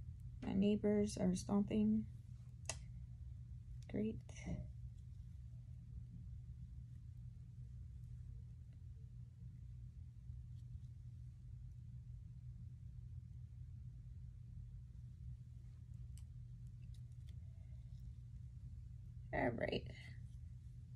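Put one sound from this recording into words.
A young woman speaks briefly and calmly, close by.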